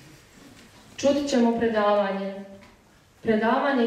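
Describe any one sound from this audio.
A young woman reads out into a microphone.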